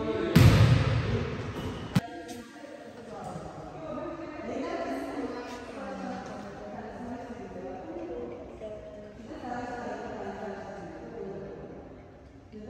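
Young girls chatter together in a large echoing hall.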